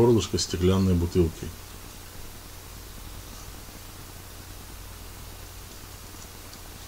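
A knife cuts and scrapes against a plastic cutting board.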